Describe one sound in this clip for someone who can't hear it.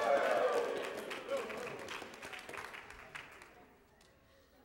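A crowd in a large echoing hall laughs.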